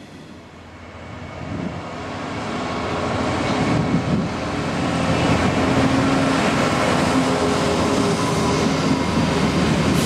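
A diesel locomotive approaches and roars past with a deep engine drone.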